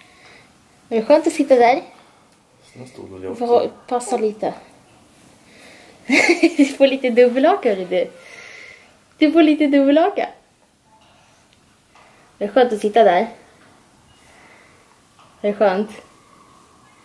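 A woman speaks close by in a high, playful, sing-song voice.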